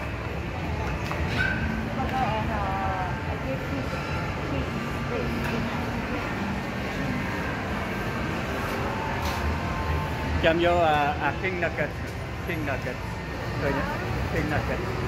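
A crowd of men and women chatter nearby indoors.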